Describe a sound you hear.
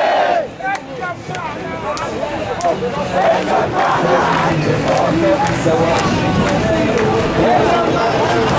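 A large crowd cheers and murmurs in the open air.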